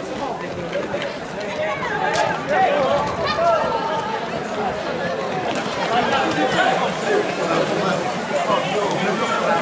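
A crowd shouts and cheers outdoors.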